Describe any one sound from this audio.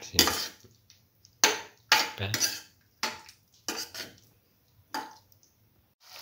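A spatula scrapes and knocks against a metal pan.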